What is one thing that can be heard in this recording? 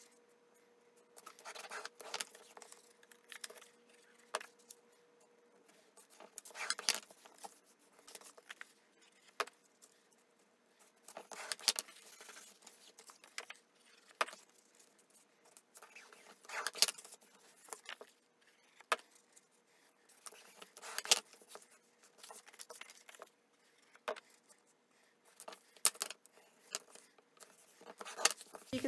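Paper rustles and slides as hands fold and press card stock.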